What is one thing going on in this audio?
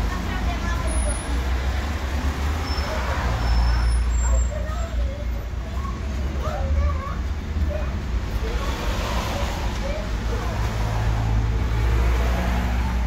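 Men and women talk quietly nearby outdoors.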